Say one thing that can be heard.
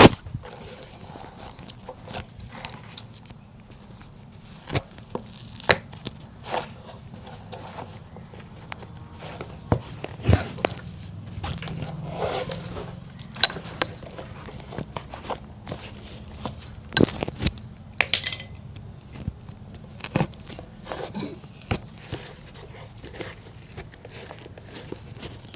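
A tool taps and knocks against a shoe now and then.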